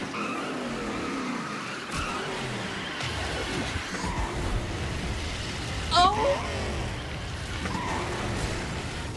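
A kart engine whines steadily as the kart races along.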